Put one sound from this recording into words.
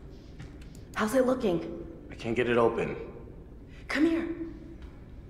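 A young woman calls out loudly.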